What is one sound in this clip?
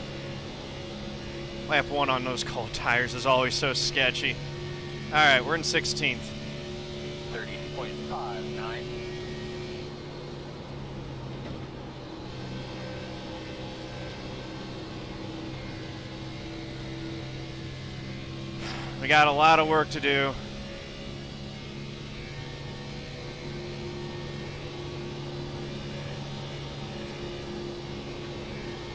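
A race car engine drones steadily.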